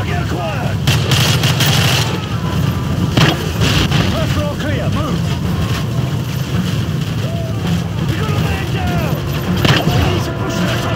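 A gun fires loud, sharp shots.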